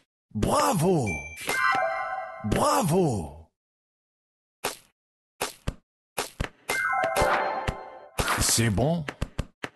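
Bright chiming jingles ring out.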